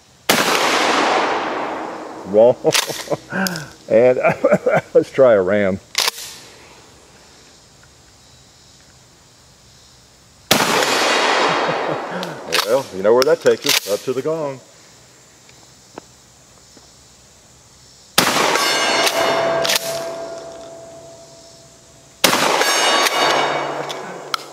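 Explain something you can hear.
Loud gunshots crack and echo outdoors.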